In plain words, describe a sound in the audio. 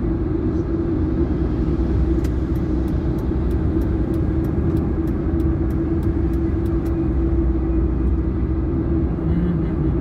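A car's engine and tyres rumble steadily on a highway.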